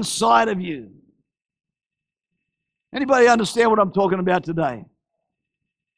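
An elderly man speaks with animation through a microphone.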